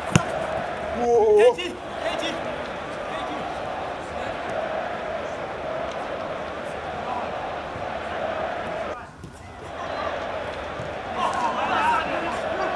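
Men shout to each other outdoors during a football game.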